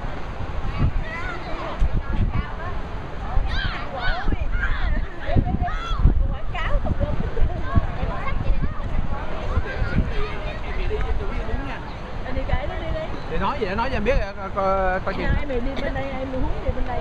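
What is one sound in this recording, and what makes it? Adults talk in the background.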